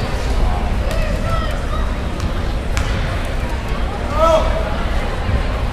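A basketball bounces on a hard wooden floor.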